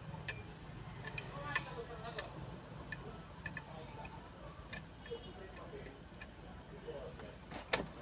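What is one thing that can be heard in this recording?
A ratchet wrench clicks as it turns a bolt.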